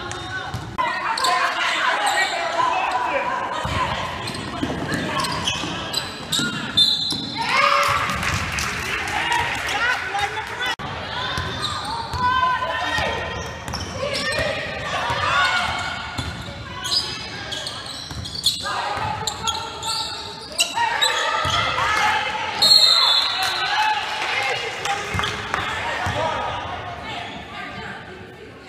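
Young women shout and call out to each other across an echoing gym.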